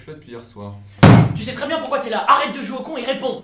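A young man shouts angrily, close by.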